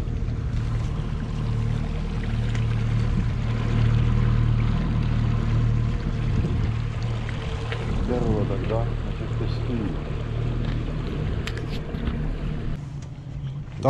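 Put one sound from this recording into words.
A boat motor hums steadily.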